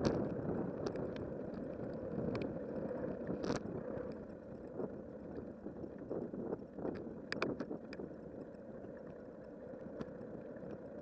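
A bicycle rattles and clicks over bumps now and then.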